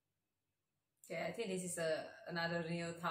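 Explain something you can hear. A young woman speaks close into a microphone.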